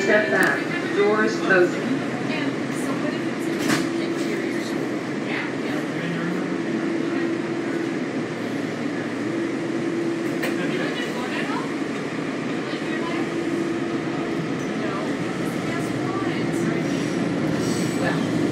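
An escalator hums and rumbles steadily nearby.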